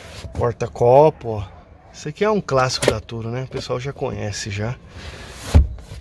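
An armrest thumps and clicks as it is lowered and raised.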